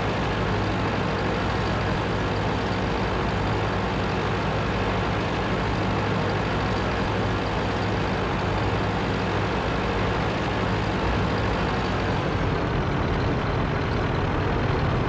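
A heavy tank engine rumbles steadily as the tank drives over sand.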